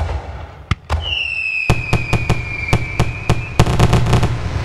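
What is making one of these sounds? A firework whistles as it shoots up.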